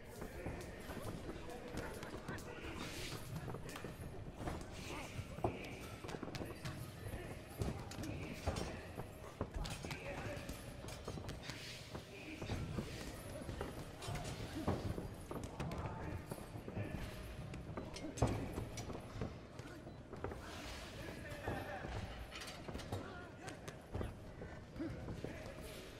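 Bare feet shuffle lightly on a canvas mat.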